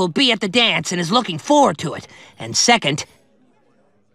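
An elderly man speaks gruffly.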